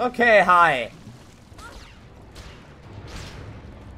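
A blade slashes and hits a creature.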